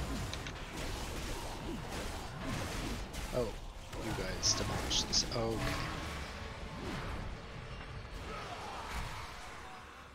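Magic spells whoosh, crackle and chime in a busy fantasy battle.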